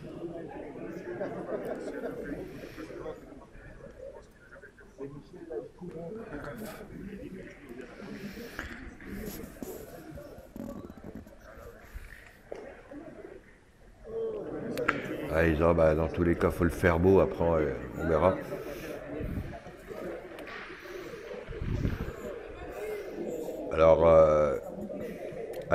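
A crowd of spectators murmurs in a large echoing hall.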